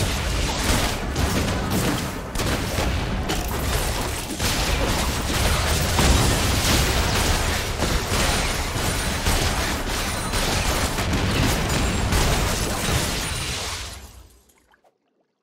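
Magic blasts and clashing hits crackle and boom in a fast fantasy battle.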